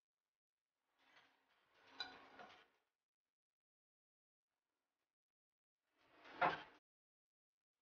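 A metal pan knocks and scrapes against a plate.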